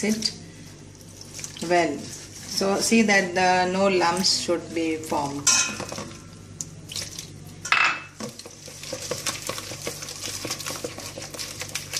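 Hands knead and squish damp flour in a metal bowl.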